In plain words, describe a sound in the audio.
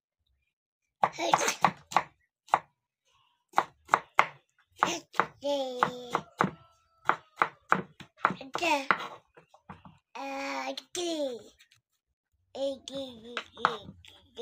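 A knife chops peppers on a wooden board with quick, repeated knocks.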